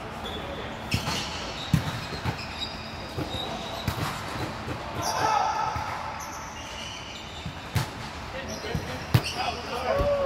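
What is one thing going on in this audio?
A volleyball is struck with sharp slaps during a game.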